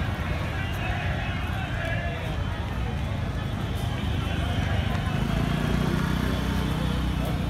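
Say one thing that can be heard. Traffic rumbles along a street in the distance.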